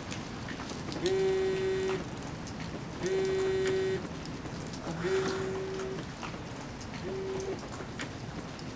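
A phone line gives several steady ringing tones.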